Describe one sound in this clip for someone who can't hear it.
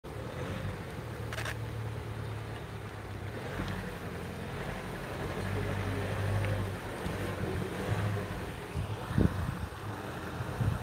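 A van engine hums low and steady as the van slowly reverses.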